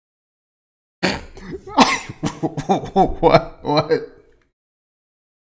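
A young man laughs heartily close to a microphone.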